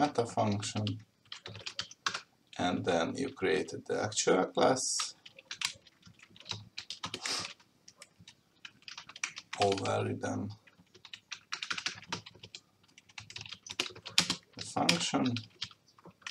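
Computer keys click in quick bursts of typing.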